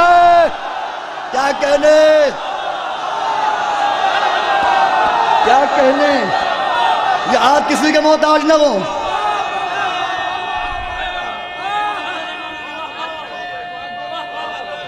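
A man chants loudly through a microphone and loudspeakers.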